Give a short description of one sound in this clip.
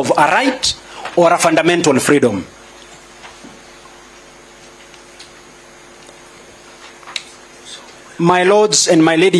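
A young man speaks formally into a microphone, pausing between phrases.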